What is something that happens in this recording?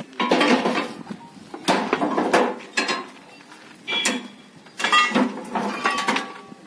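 Heavy metal pieces clank against each other as they are loaded.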